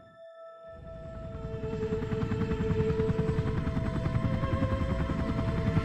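A helicopter's rotor thumps and whines overhead.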